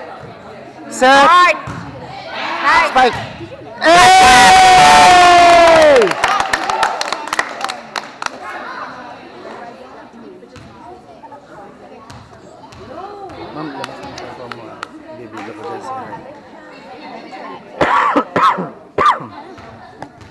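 Girls in the audience shout and cheer loudly in an echoing gym.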